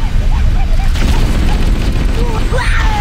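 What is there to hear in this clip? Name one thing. An assault rifle fires rapidly.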